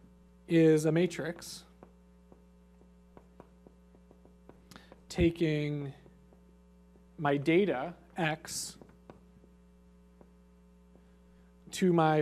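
A man speaks calmly into a microphone, in short bursts.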